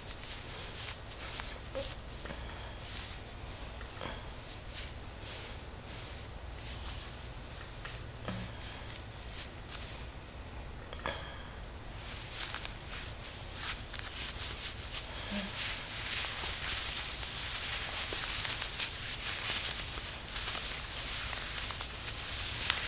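Hands rub and press on fabric, rustling softly.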